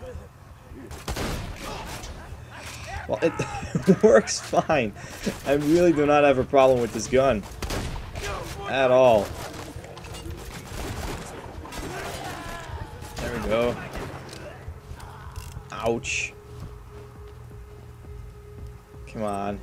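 Gunshots fire in short, rapid bursts.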